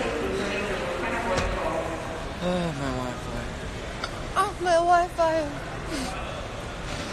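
A young woman talks casually close by.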